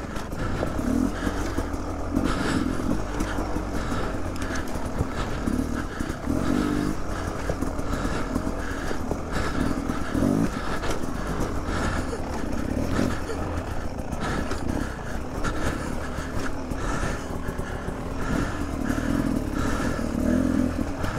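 Tyres crunch and bump over loose rocks.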